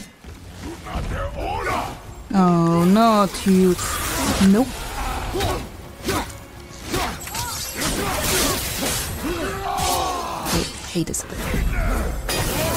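Weapons clash and strike with sudden blows.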